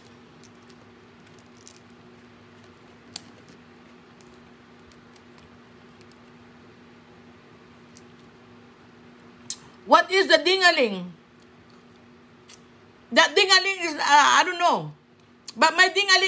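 A woman peels crawfish shells with soft cracking.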